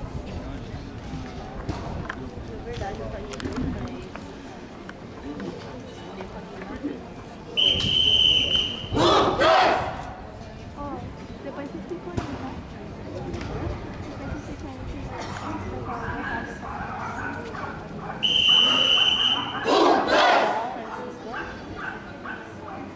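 Children chatter nearby outdoors.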